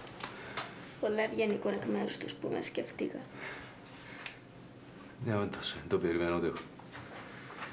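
A middle-aged man speaks calmly nearby.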